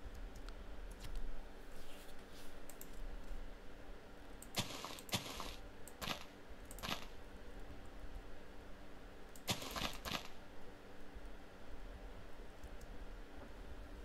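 Game footsteps patter on grass and dirt.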